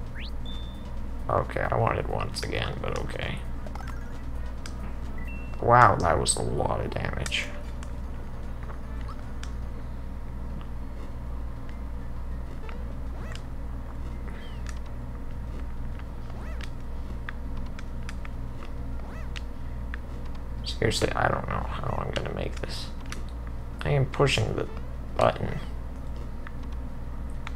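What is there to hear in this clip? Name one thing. Retro video game sound effects chime and blip.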